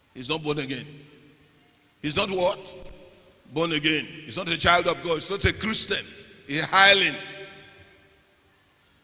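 An adult man speaks with animation into a microphone in a large echoing hall.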